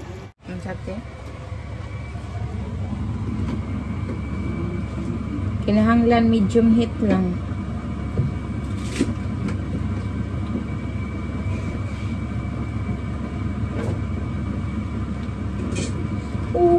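A woman talks to the listener close by.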